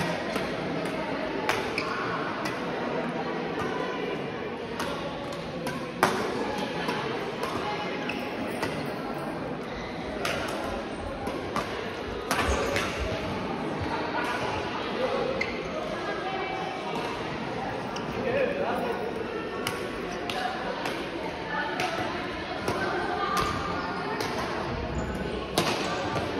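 Men talk and call out across a large echoing hall.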